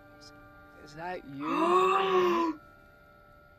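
A young man speaks in a shaky, emotional voice.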